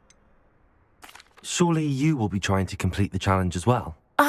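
A young man speaks calmly and clearly, close to the microphone.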